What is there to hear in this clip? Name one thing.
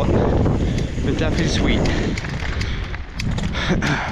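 Mountain bike tyres crunch on gravel.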